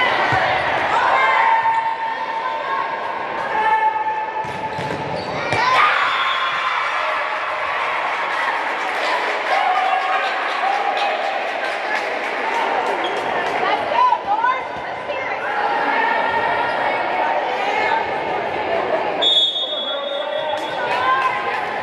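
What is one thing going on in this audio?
Young women players call out and shout across a large echoing hall.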